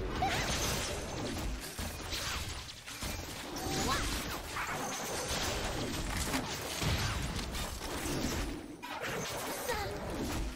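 Weapons strike with sharp hits.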